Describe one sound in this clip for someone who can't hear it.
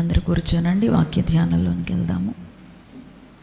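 A woman sings into a microphone with a steady, held voice.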